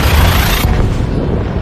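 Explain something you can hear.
A loud rushing whoosh bursts and quickly cuts off.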